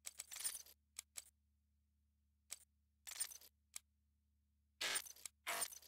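Short electronic menu clicks and whooshes sound as selections change.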